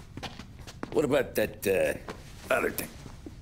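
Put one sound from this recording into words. A younger man speaks calmly, close by.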